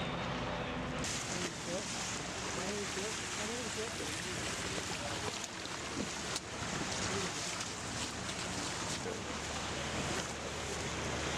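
Men talk nearby in calm voices.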